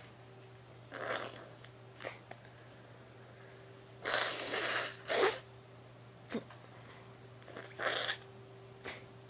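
A young woman blows her nose into a tissue.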